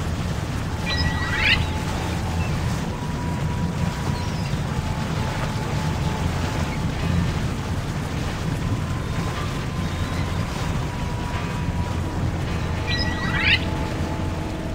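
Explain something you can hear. A bright chime sweeps upward as a star is collected.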